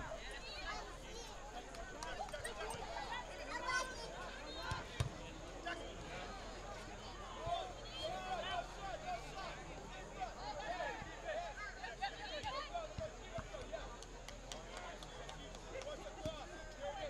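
A crowd of men and women chatters and calls out nearby outdoors.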